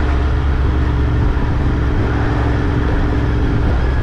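A car passes by in the other direction.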